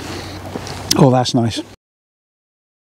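A middle-aged man speaks close up.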